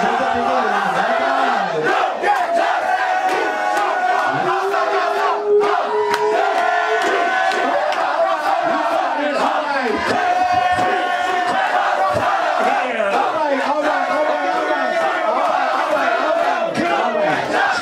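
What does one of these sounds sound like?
A crowd cheers and shouts loudly in a packed room.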